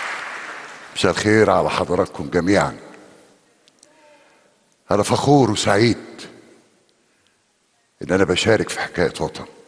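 An elderly man speaks slowly through a microphone in an echoing hall.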